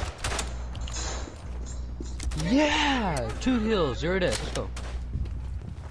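A bolt-action rifle's bolt clacks as it is worked.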